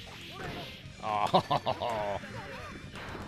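A game character shouts during a fight.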